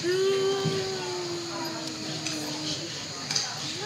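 A young child sings a long, steady note in a large echoing hall.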